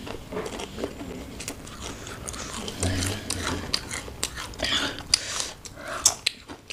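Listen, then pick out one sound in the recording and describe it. Thin crisp chips snap and rustle between fingers.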